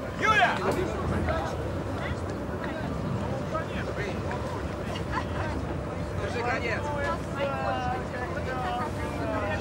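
A young man calls out from a short distance.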